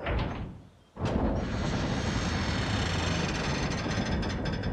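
Heavy doors rumble and grind as they swing open.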